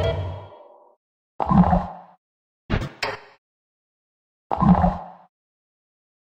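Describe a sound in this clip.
Bubbly game sound effects play in short bursts.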